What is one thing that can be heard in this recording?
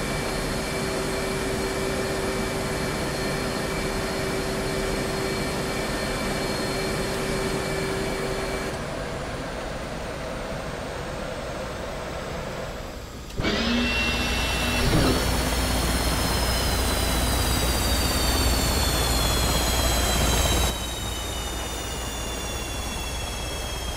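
A jet engine whines steadily, growing louder and then slowly falling in pitch.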